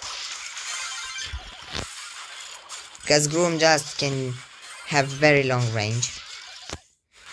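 Cartoonish blasts and zaps crackle in quick bursts.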